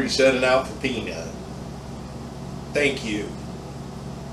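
An older man speaks briefly and calmly nearby.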